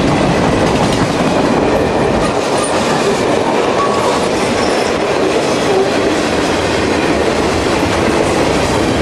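A freight train rumbles past close by, with wheels clattering over the rail joints.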